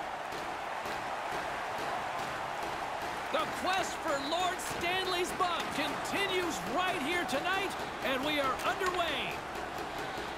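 A large crowd murmurs and cheers in an echoing arena.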